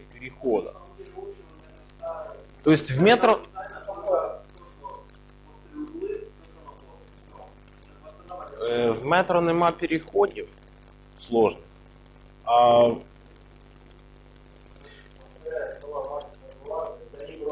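A man speaks calmly and at length, in a room with a slight echo.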